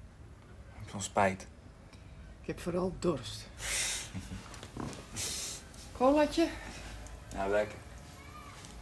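A woman speaks quietly nearby.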